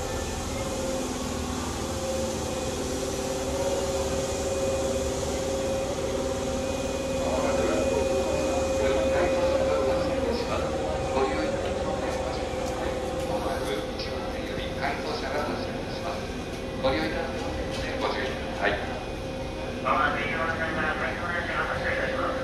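A stationary train hums steadily nearby.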